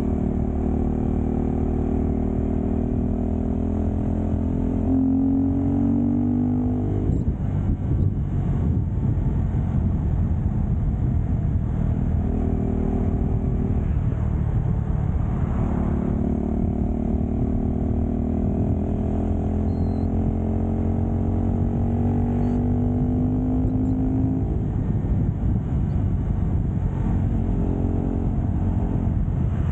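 A motorcycle engine hums and its pitch rises and falls as it speeds along.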